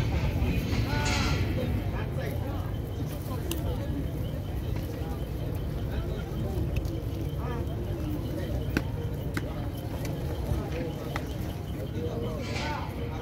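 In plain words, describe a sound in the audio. Pigeon wings flutter briefly.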